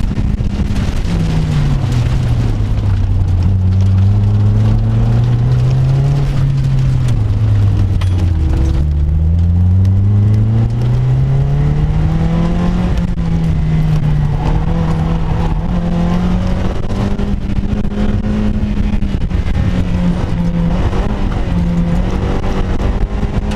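Wind rushes past in an open car.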